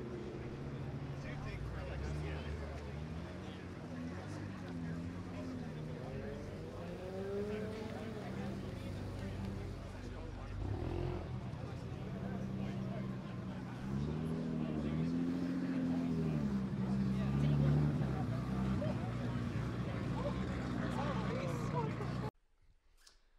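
A crowd of people chats outdoors.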